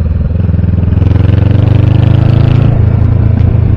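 A motorcycle engine revs up briefly.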